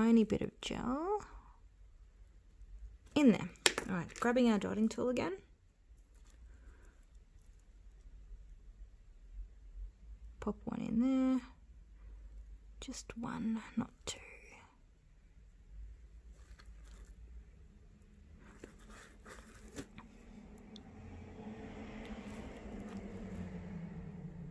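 A small metal tool taps and clicks lightly against a hard false nail.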